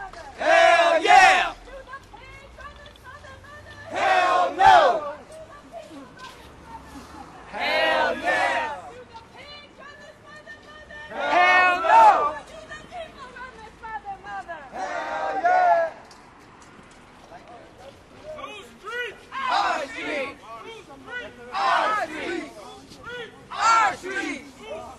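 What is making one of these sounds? A man shouts loudly close by, outdoors.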